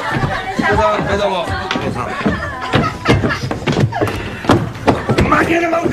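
Footsteps thud on a wooden table.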